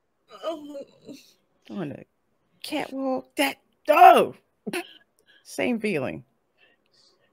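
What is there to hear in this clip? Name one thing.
A woman laughs heartily over an online call.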